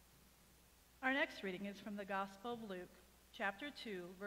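A man reads aloud through a microphone in a large room.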